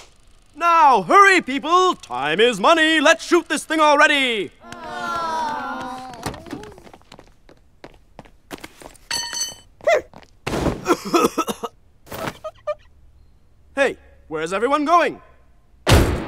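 A cartoon boy shouts angrily in a high, strained voice.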